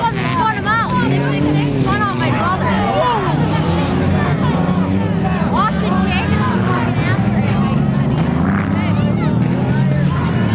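Several race car engines idle and rumble steadily outdoors.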